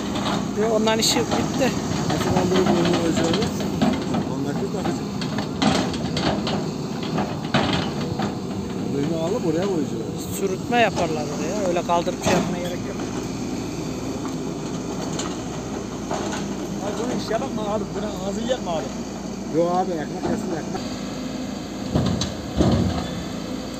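An excavator bucket clanks and knocks against a truck's metal side.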